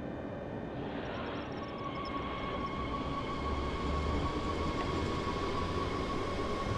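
An electric train's motor whines and rises in pitch as the train pulls away.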